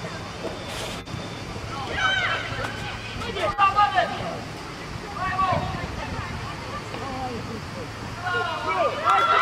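Children shout to each other.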